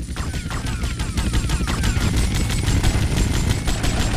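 A rocket whooshes through the air.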